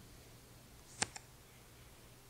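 A playing card snaps into place with a short click.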